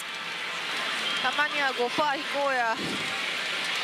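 A young woman speaks animatedly into a close microphone.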